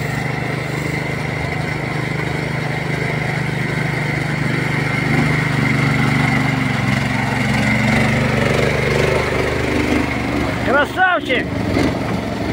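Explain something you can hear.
A small engine rumbles steadily close by.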